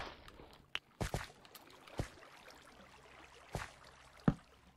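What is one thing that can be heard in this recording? Footsteps thud on stone at a slow, uneven pace.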